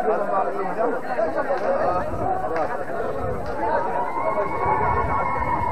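A crowd of men chatters and talks loudly nearby.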